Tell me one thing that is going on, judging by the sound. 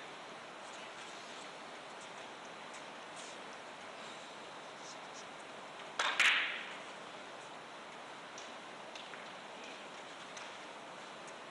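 Footsteps tread softly around a billiard table.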